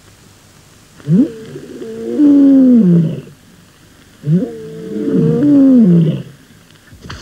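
A man grunts and groans loudly with effort.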